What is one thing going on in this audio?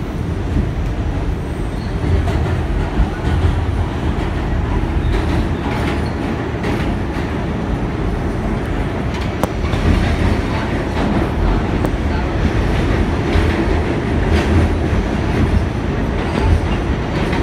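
A subway train rumbles and rattles loudly along the tracks.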